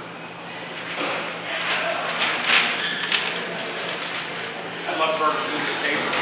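Large paper sheets rustle as a man flips them over.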